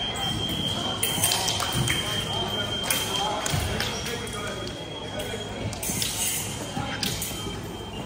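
Fencing blades clash and click sharply in a large echoing hall.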